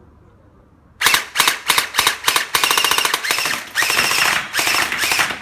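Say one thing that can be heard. A toy rifle fires in rapid, loud bursts.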